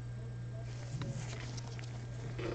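A trading card slides and taps softly into a plastic holder.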